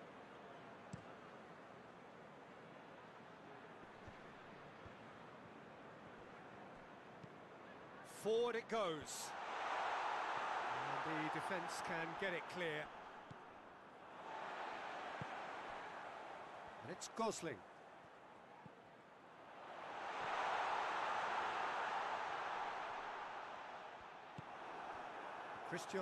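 A large stadium crowd roars and cheers in waves.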